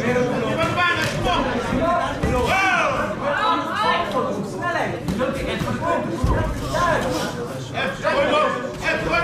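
A crowd shouts and cheers loudly throughout.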